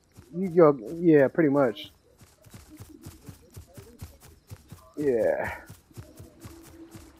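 Quick footsteps patter through grass.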